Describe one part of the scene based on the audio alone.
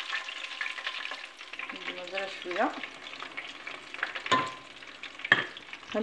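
Food sizzles and bubbles as it deep-fries in hot oil.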